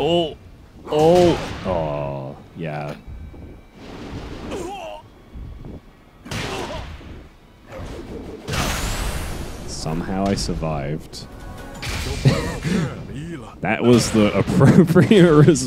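Heavy punches and kicks land with loud smacking thuds.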